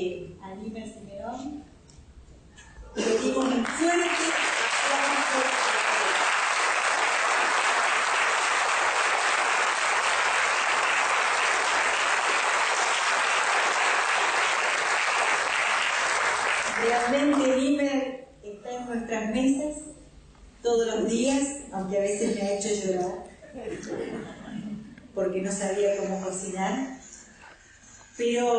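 A middle-aged woman speaks calmly through a microphone and loudspeakers.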